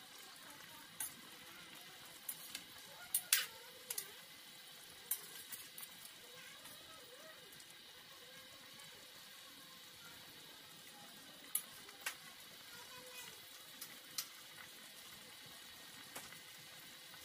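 A metal ladle clinks against the rim of a cooking pot.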